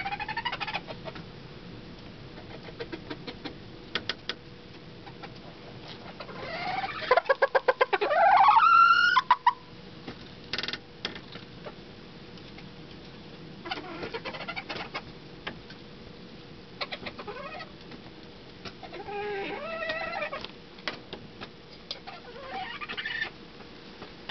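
A rooster clucks and murmurs softly close by.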